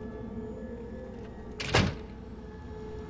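A door clicks open.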